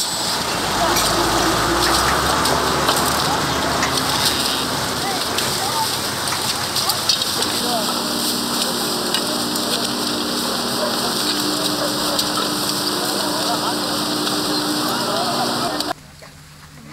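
Rubbish rustles and crackles as people pick through it.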